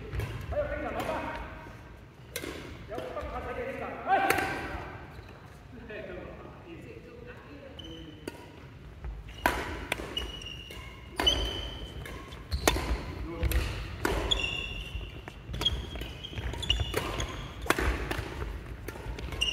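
Shuttlecocks are struck sharply with rackets in a large echoing hall.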